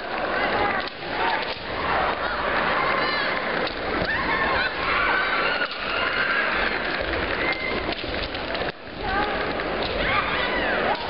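Kendo fencers let out loud, drawn-out shouts in a large echoing hall.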